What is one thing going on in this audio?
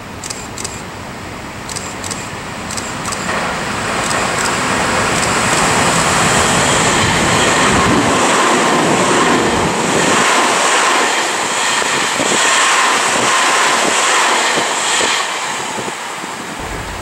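A train approaches and rumbles past close by on the tracks.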